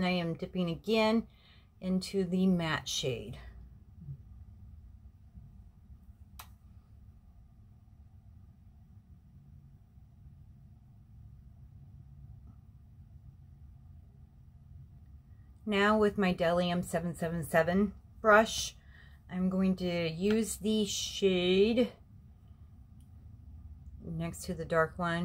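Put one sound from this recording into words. A woman talks calmly and close by, straight to the listener.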